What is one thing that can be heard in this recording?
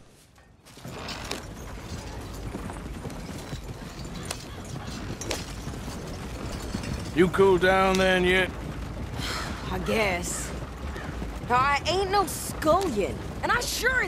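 Horses' hooves clop steadily on a dirt track.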